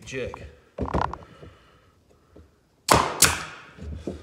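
A nail gun fires with a sharp snap into wood.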